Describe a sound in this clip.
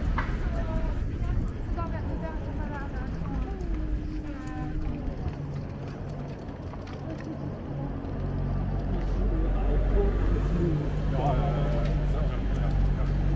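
Passers-by chatter faintly nearby.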